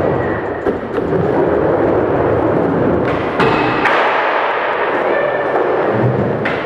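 Skateboard wheels roll across a hard floor.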